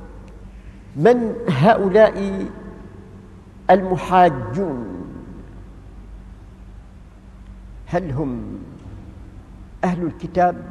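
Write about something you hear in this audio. An elderly man speaks slowly in short phrases with long pauses, heard through a microphone.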